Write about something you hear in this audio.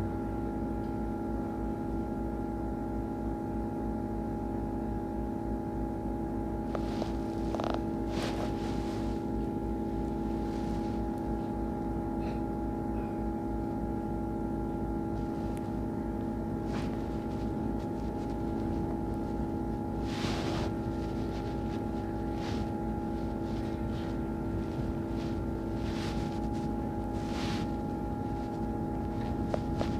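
A bus engine drones steadily from close by.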